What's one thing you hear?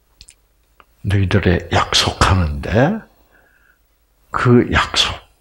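An elderly man speaks with animation through a headset microphone.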